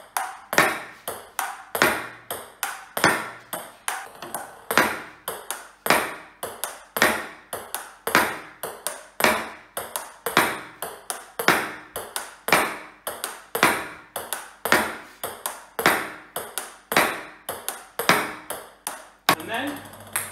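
A paddle smacks a ping pong ball again and again.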